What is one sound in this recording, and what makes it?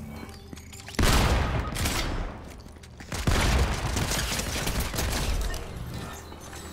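A video game shotgun fires in loud blasts.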